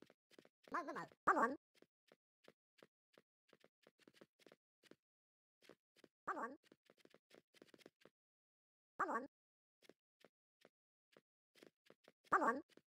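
Keys on a phone keyboard tap in quick, light clicks.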